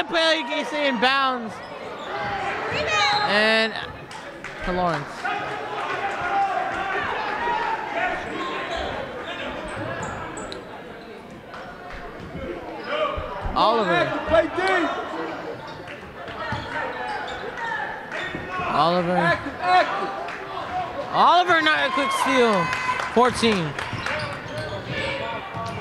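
Sneakers squeak sharply on a hard court in a large echoing gym.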